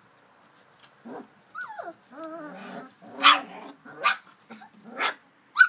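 Puppies whimper and yelp in high squeaky cries.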